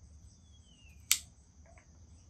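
A lighter clicks sharply.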